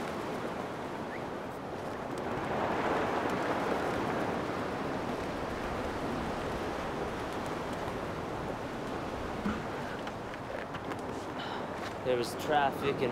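Waves wash steadily against the shore.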